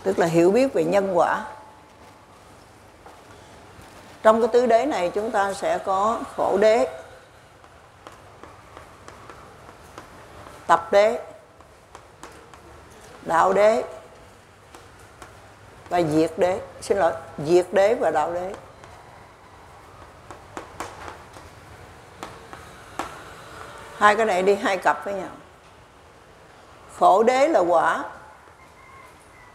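An elderly man lectures calmly in bursts, heard through a microphone in a room with a slight echo.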